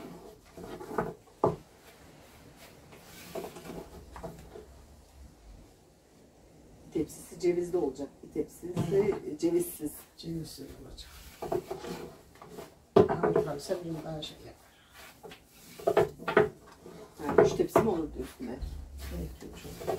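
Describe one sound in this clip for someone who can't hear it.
A rolling pin rolls and thumps on a wooden board.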